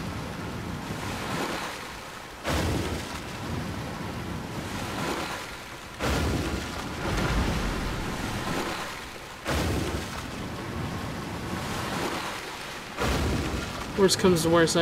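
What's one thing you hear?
Water rushes and splashes as a small craft speeds along, with loud surges every few seconds.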